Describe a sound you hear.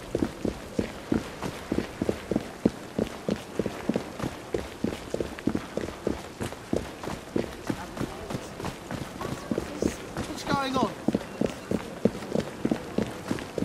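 Footsteps run quickly and steadily on cobblestones.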